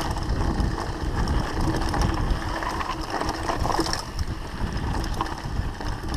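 Bicycle tyres crunch and rattle over a bumpy dirt trail.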